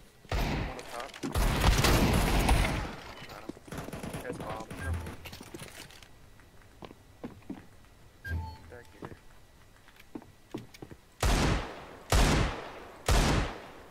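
Loud gunshots fire in single sharp bursts.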